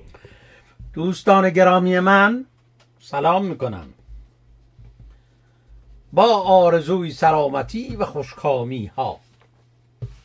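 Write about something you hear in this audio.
An elderly man speaks slowly and close to the microphone.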